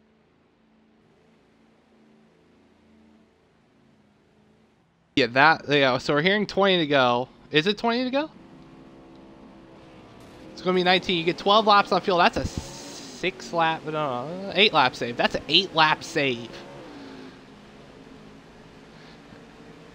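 Race car engines roar past at speed.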